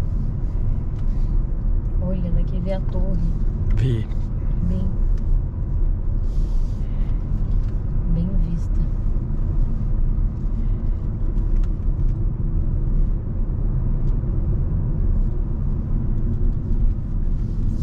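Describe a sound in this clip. Tyres rumble on the road.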